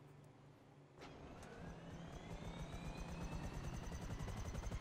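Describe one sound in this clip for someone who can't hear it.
A helicopter engine starts up with a rising whine.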